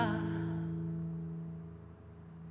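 A young woman sings a held note close to a microphone and lets it fade.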